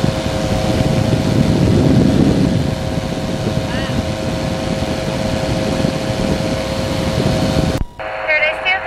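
A small propeller engine drones loudly.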